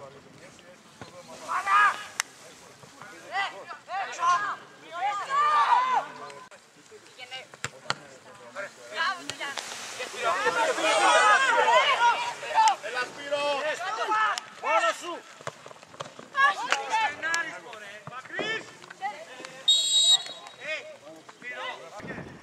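Young male players shout and call out across an open field.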